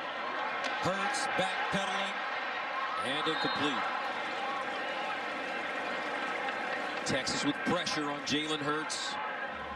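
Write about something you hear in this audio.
A large stadium crowd cheers and roars steadily.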